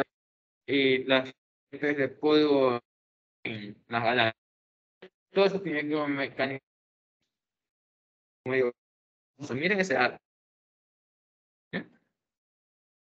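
A young man speaks calmly into a microphone, close by, in short bursts with pauses.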